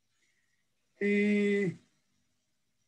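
An elderly man sings a short held note, heard through a microphone on a call.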